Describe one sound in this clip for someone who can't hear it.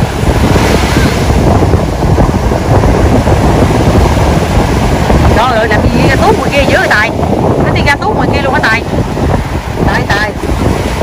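Ocean waves break and wash through shallow surf.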